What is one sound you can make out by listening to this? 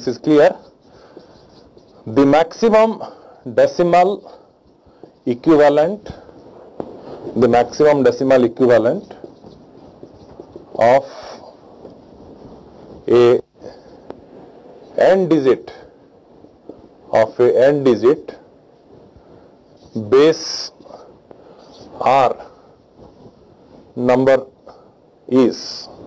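A man speaks calmly in short phrases with pauses, close to a microphone.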